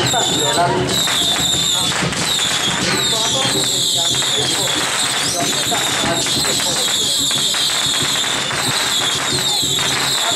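A large crowd chatters loudly all around, close by.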